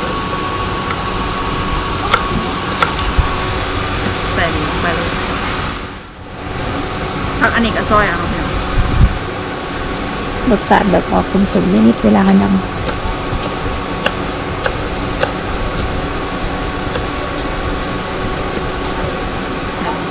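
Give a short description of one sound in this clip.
A knife chops herbs on a wooden board with quick taps.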